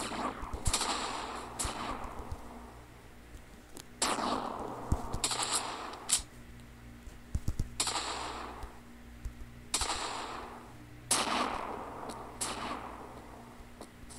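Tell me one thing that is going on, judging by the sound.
Loud gunshots ring out every few seconds, each followed by a long echoing tail.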